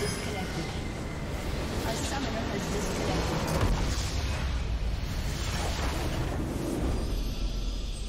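Game spell effects blast and crackle in a loud fight.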